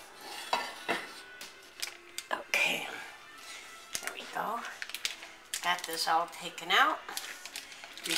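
Plastic wrapping crinkles as it is peeled back.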